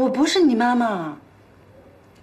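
A boy speaks quietly, close by.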